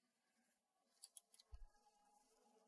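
A padlock clicks and rattles against a metal ring.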